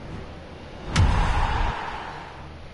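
A sudden whooshing boom sounds from a game, then fades.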